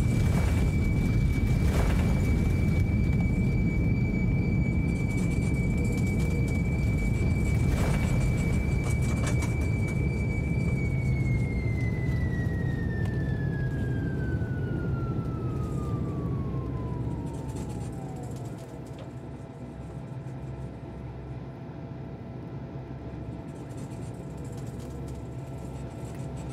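A jet engine rumbles deeply and gradually grows quieter.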